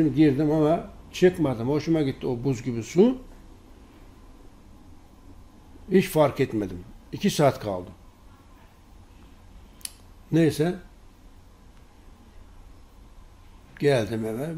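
A middle-aged man speaks calmly into a close microphone, pausing between phrases.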